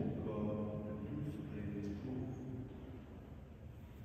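An elderly man chants in a large echoing hall.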